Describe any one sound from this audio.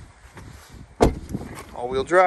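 A car tailgate slams shut.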